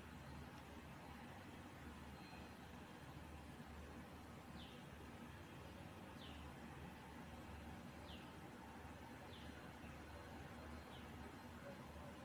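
A metal fork scrapes against a frying pan.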